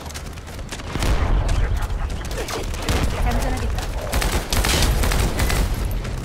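Explosions boom loudly with deep rumbling.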